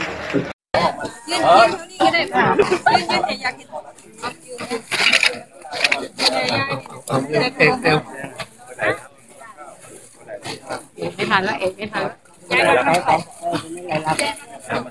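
Several men and women talk close by.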